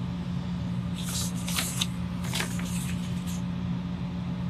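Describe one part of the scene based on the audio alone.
A sheet of paper rustles as it is shifted.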